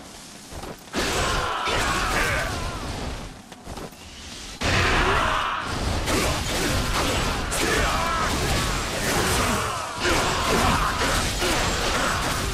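Many men shout and cry out in battle.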